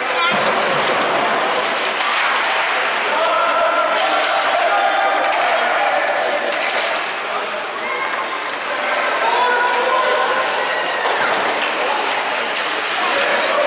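Children shout and call out in a large echoing rink.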